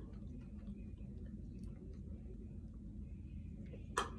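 A woman slurps a drink through a straw.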